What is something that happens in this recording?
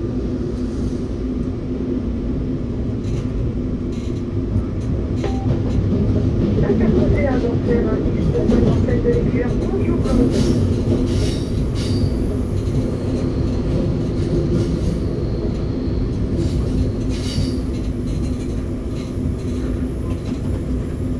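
A train rumbles steadily along the tracks through an echoing tunnel.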